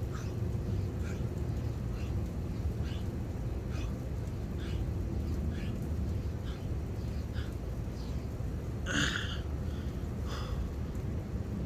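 A man breathes out hard in short, regular puffs.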